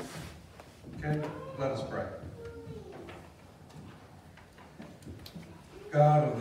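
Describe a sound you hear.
A man speaks calmly at a distance in a large echoing room.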